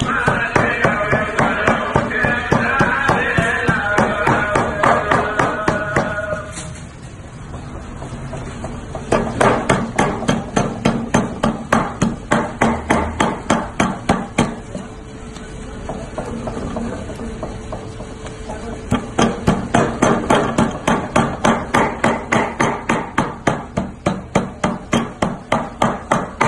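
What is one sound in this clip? A heavy knife chops rapidly and rhythmically on a wooden board.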